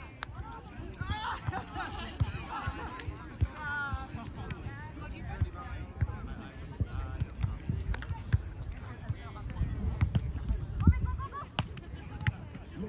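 Young people call out to each other outdoors, some way off.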